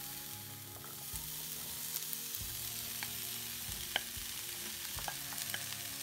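Chopped vegetables tumble into a sizzling pan.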